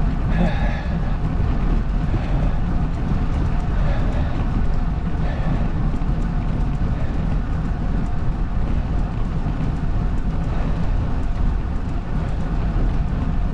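Tyres hum on a rough road.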